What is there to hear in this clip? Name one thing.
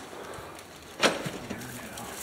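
A door's push bar clacks and the door bangs open.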